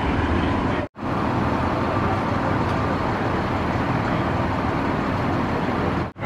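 An ambulance engine idles nearby with a steady low rumble.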